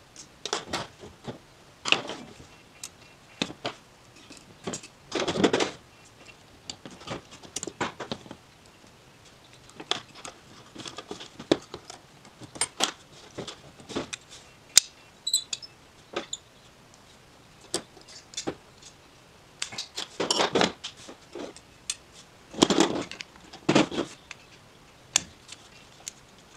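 Small metal carburettor parts clink and click as they are handled.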